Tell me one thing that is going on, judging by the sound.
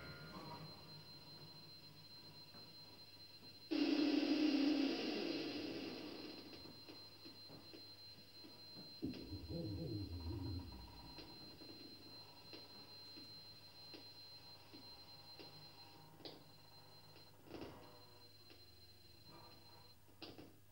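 Electronic sounds play from a synthesizer, with sudden swells, gliding tones and scattered clicks.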